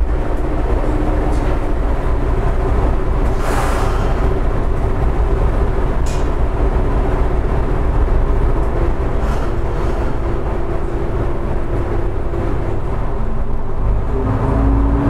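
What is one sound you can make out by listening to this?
A train's diesel engine idles with a steady, low hum.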